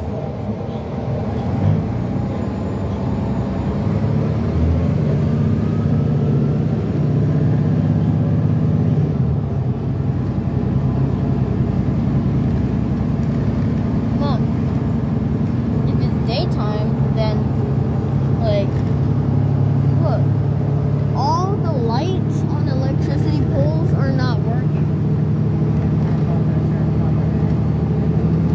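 A bus engine hums steadily from inside as it drives along a road.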